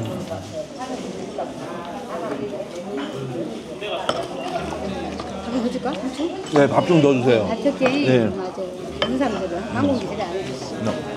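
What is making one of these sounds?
A middle-aged man talks casually at close range.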